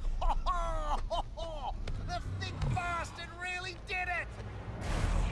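A man shouts with animation, close by.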